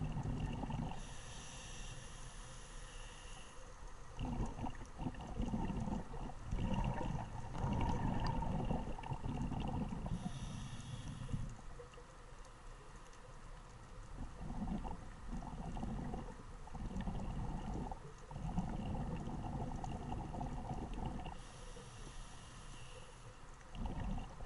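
A scuba diver breathes in through a regulator with a sharp hiss.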